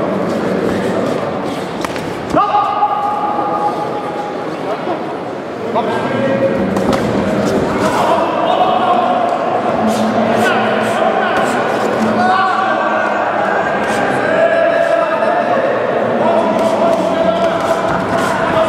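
Boxing gloves thud against bodies in sharp blows.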